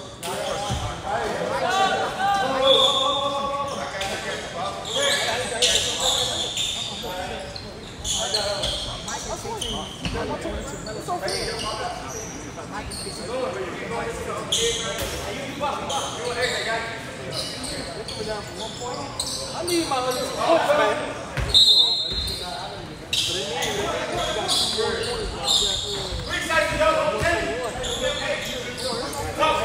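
Sneakers squeak and thump on a wooden court in an echoing gym.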